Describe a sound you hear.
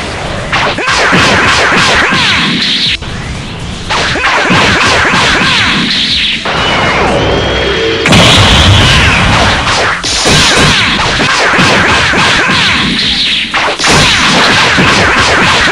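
Cartoon punches and energy blasts crash in a fighting game.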